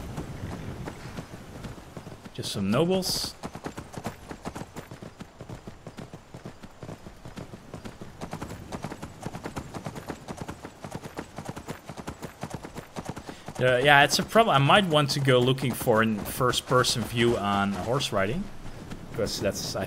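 Horse hooves clop steadily on a gravel path.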